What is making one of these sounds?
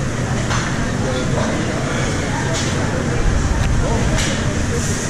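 A crowd murmurs and chatters in a busy room.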